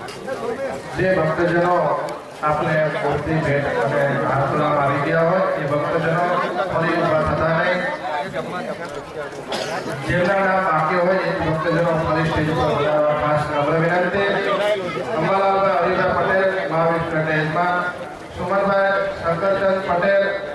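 A man speaks with animation through a loudspeaker.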